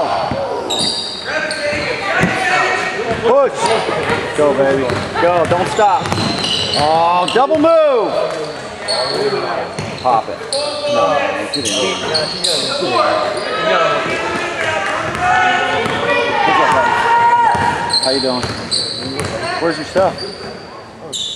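Spectators shout and cheer loudly in an echoing gym.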